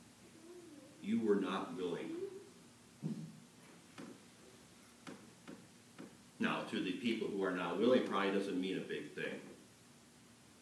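A middle-aged man speaks calmly into a microphone in a quiet hall, with long pauses.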